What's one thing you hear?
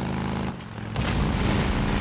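Motorcycle tyres skid across grass and dirt.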